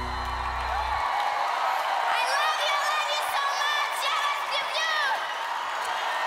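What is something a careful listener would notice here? A young girl sings through a microphone.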